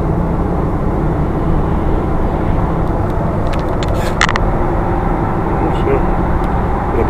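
A car engine hums steadily with road noise rumbling inside the cabin.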